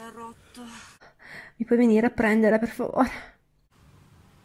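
A young woman speaks close to the microphone.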